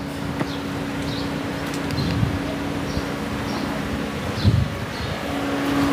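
A car door clicks and thuds shut.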